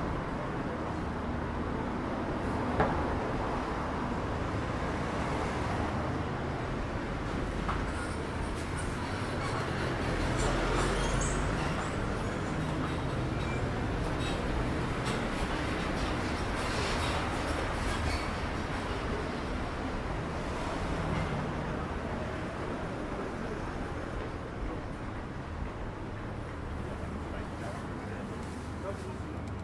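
City traffic rumbles steadily outdoors nearby.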